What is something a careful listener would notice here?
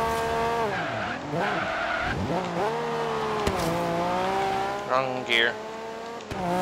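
Tyres squeal as a car slides through a bend.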